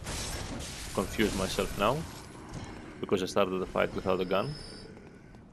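Monsters growl and shriek in a fight.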